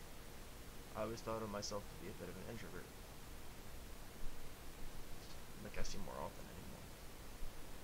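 A young man speaks calmly and briefly into a close microphone.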